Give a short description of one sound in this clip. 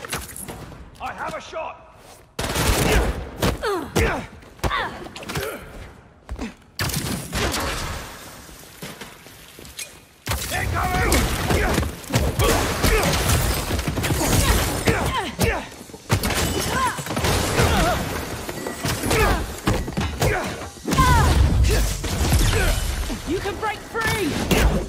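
Punches and kicks thud hard in a fight.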